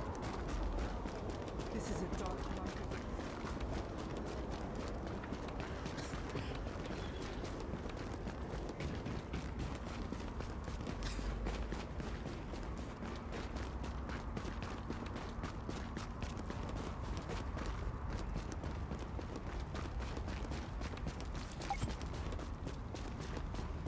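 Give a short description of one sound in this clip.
Footsteps crunch through snow at a steady pace.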